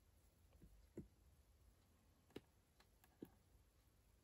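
Card taps lightly on a wooden surface.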